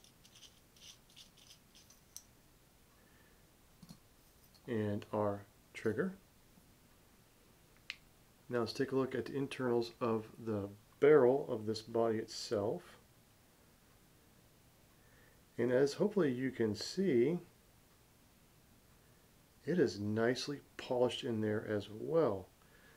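Small metal parts click and tap together as they are handled.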